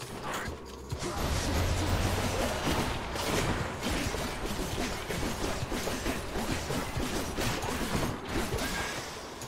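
Game spells blast and crackle in rapid bursts.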